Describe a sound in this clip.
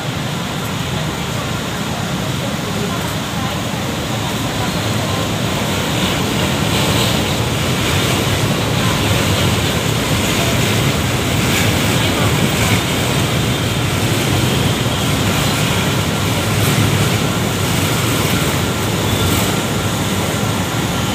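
City traffic rumbles steadily nearby.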